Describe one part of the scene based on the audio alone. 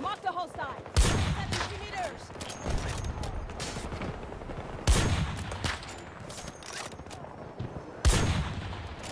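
Gunshots crack loudly, one at a time.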